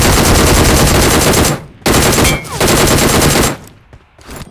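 An engine roars loudly.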